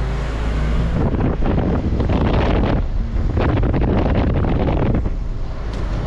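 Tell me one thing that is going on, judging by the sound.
Wind rushes past the open car window.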